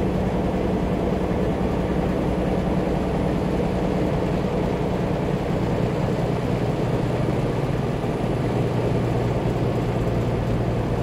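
A vehicle's engine hums steadily as it drives along.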